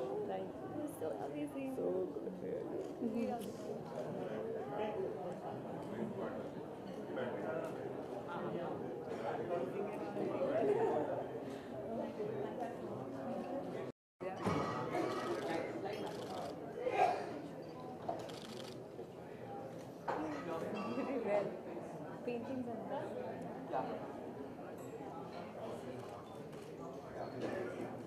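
A crowd of people chatter loudly nearby.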